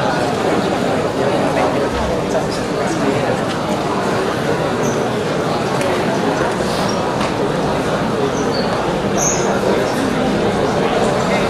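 A large audience chatters in an echoing hall.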